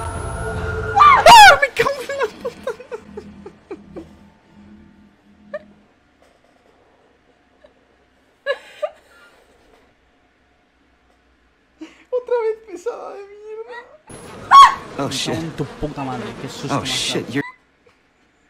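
A young man laughs hard close to a microphone.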